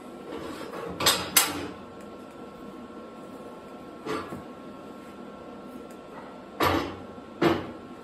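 Heavy steel pieces clank and ring against each other.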